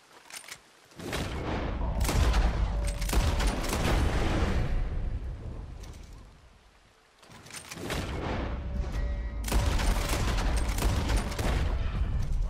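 A rifle fires loud shots that echo.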